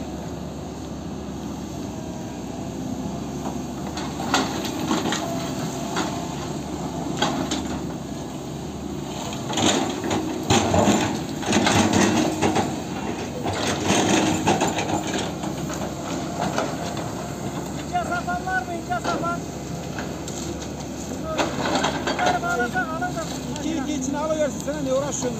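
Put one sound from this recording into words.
A heavy excavator engine rumbles steadily.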